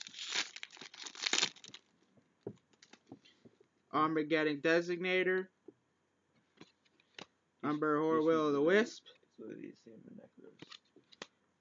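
Playing cards rustle and slide against each other.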